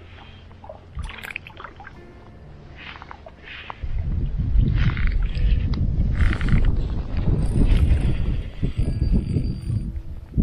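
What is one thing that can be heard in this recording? A fishing reel whirs and clicks as its handle is cranked.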